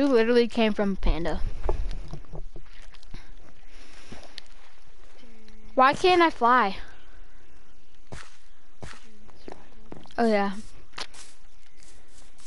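Footsteps thud softly on grass and dirt.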